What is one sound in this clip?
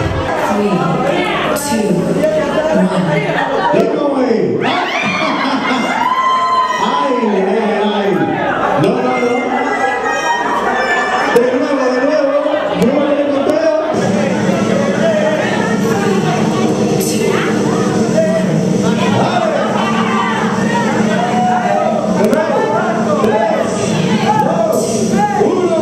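A crowd of men and women chatter and laugh nearby in a large room.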